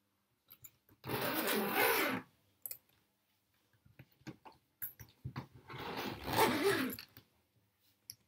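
A zipper rasps along a suitcase.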